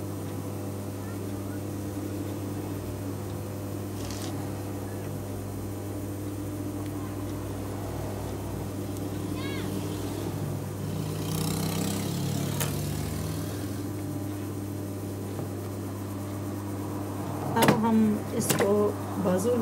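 A sewing machine motor hums steadily.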